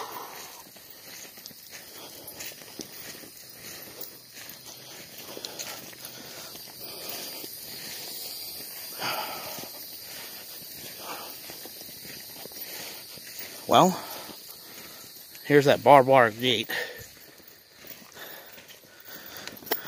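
Footsteps crunch softly on dry ground.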